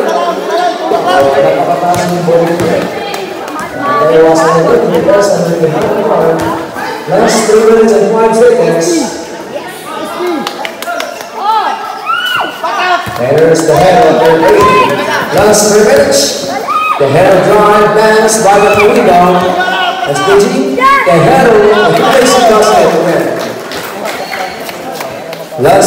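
A crowd of spectators shouts and cheers nearby, outdoors.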